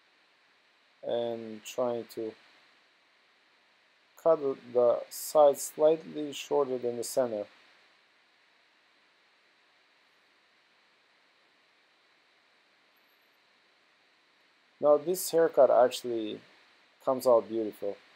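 A man talks calmly, close by.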